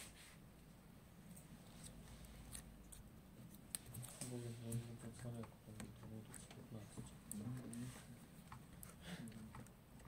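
A fishing reel's spool clicks softly as a finger turns it.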